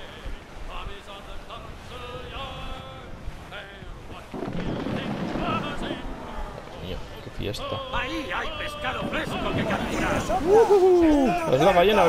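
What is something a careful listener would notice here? Rough sea waves surge and crash around a ship.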